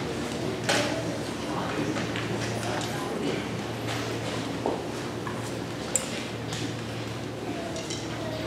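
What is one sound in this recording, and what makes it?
Young musicians murmur quietly in a large hall.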